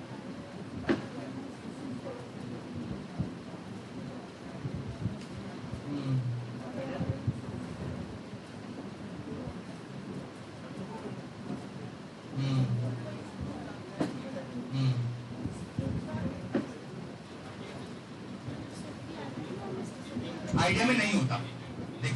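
An audience murmurs quietly.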